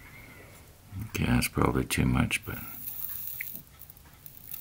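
Flux sizzles under a soldering iron tip.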